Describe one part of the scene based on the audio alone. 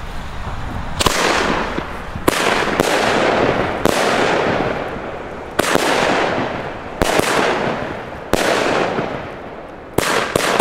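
Fireworks crackle and hiss as they burst.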